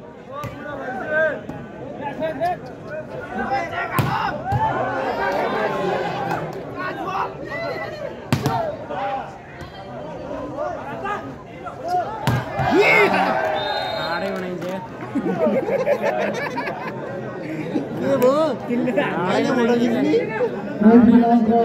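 Men call out to each other on the court.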